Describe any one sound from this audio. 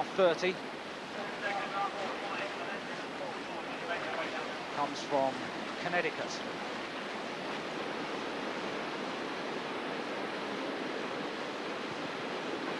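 A paddle splashes in the water.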